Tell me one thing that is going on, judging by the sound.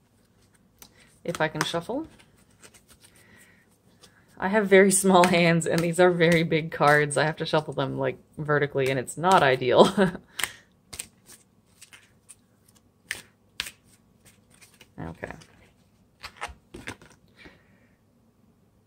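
Playing cards slide and flick softly as a deck is shuffled by hand.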